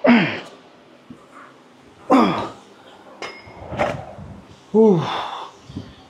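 Dumbbells clank as they are set down on the floor.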